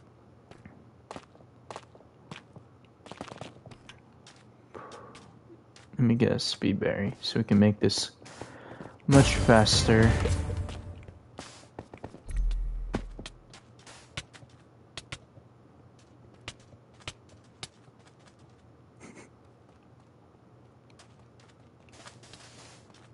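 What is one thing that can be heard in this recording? Quick footsteps tap on stone.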